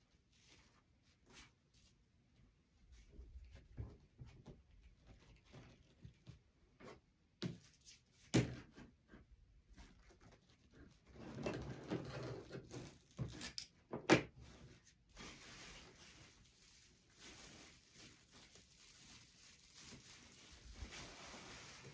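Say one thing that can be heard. Stiff mesh ribbon rustles and crinkles as it is handled.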